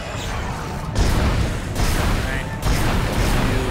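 A gun fires a few sharp shots.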